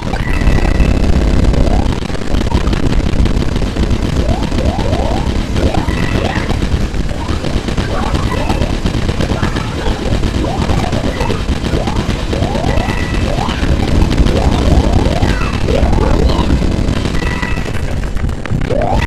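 Video game explosions rumble low and deep.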